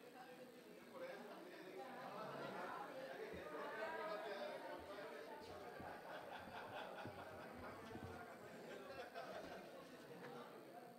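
A crowd of people murmurs and chatters quietly in a room.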